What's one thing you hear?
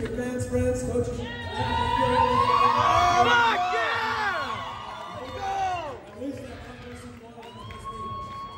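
A man announces loudly over a loudspeaker in a large echoing hall.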